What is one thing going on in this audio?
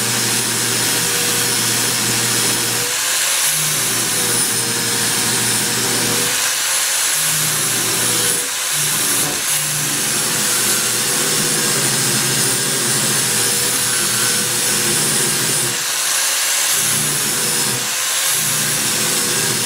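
An angle grinder whines loudly as it cuts into metal, with short pauses between cuts.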